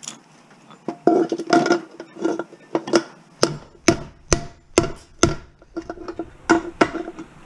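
A hammer strikes metal in quick, ringing blows.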